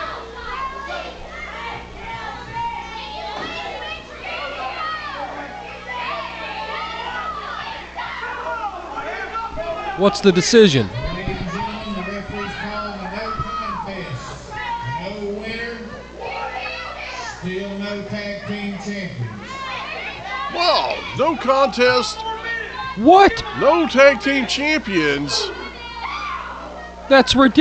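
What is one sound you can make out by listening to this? Several men talk and shout loudly nearby in an echoing room.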